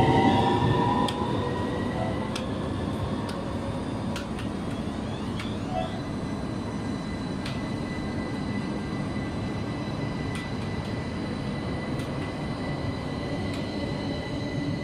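A tram rolls past close by with a steady low rumble.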